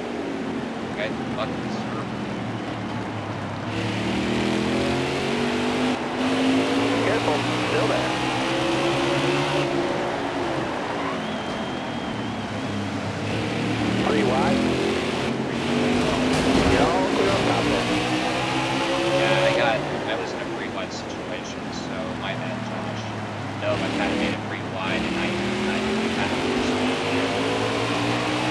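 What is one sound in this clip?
Race car engines roar and whine, rising and falling in pitch as they shift gears.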